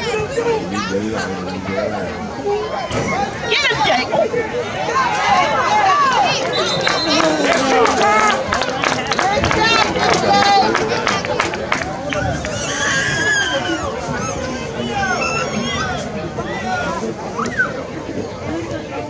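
A crowd of spectators chatters and shouts nearby, outdoors.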